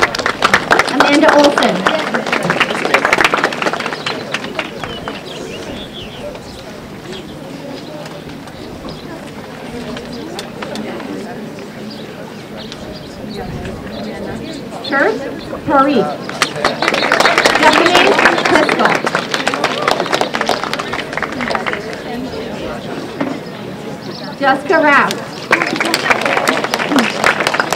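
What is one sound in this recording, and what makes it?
A woman speaks into a microphone over a loudspeaker, reading out names outdoors.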